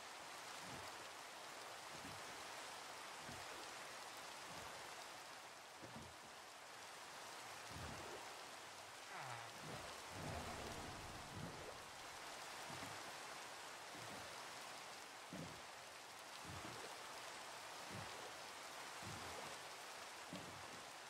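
Heavy rain pours steadily onto water.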